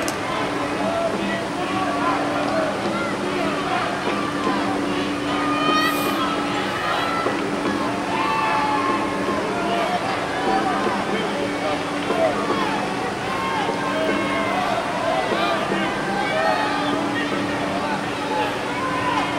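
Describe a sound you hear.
Young men shout and call to each other across an open outdoor field.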